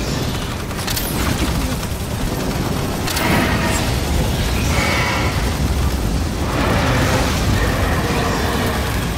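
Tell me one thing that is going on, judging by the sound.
A flamethrower roars in long bursts.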